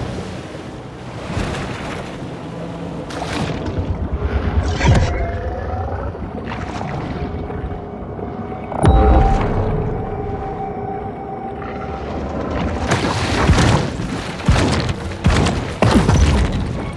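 Water splashes and swishes as a large fish swims through it.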